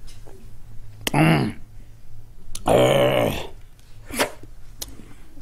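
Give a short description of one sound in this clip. A middle-aged man makes loud slurping and sipping noises in short bursts through a microphone.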